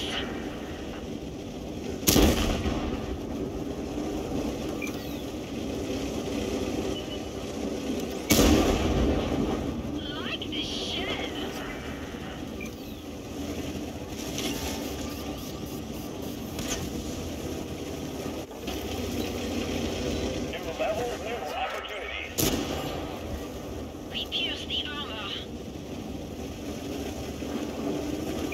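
A tank engine rumbles and clanks steadily.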